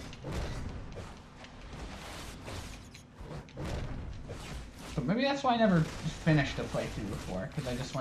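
Magic spells crackle and whoosh in bursts.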